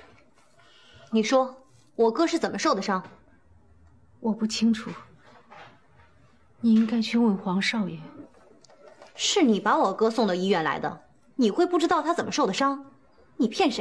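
A young woman asks a question with surprise.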